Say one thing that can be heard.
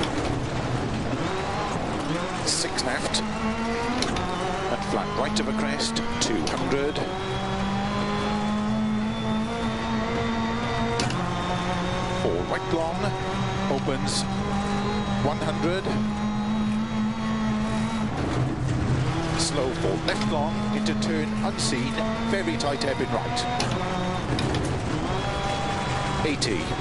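Tyres skid on loose gravel.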